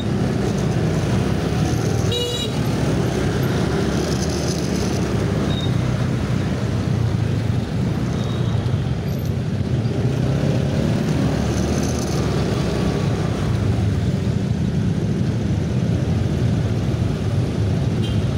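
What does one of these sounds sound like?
Motorbike engines idle and rumble close by in heavy traffic.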